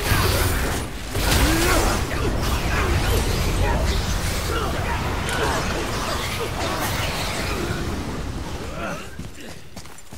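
A fierce magical wind roars and whooshes.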